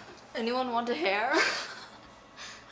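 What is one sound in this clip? A teenage girl laughs close by.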